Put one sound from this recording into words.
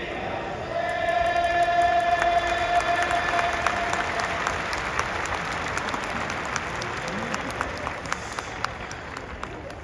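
A crowd claps in quick bursts.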